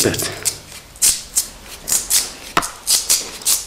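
Bark swishes and rips as it is stripped from a thin rod.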